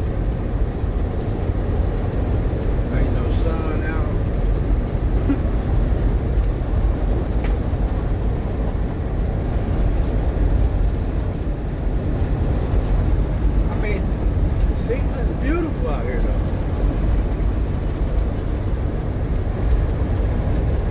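Tyres hiss and roar on a wet, snowy road.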